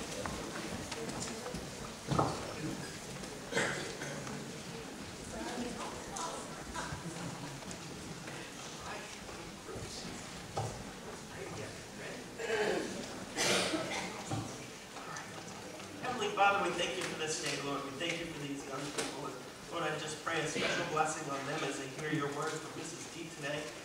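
Children chatter and murmur nearby.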